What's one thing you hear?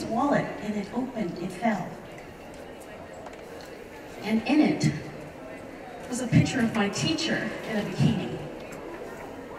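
A woman speaks into a microphone with animation, heard through loudspeakers in a large echoing hall.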